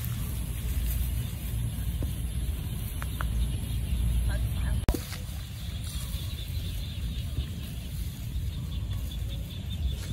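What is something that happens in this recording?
Bare feet swish through tall grass.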